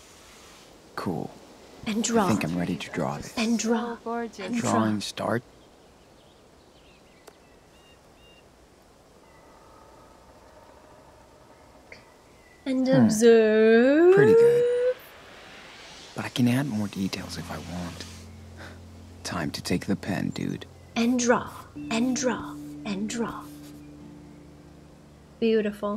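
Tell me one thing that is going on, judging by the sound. A young woman talks calmly and close to a microphone.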